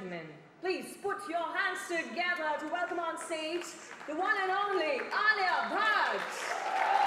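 A young woman speaks with animation into a microphone in a large hall.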